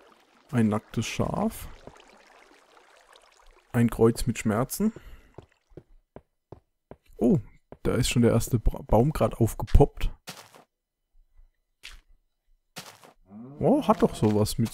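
Footsteps tap on a stone path.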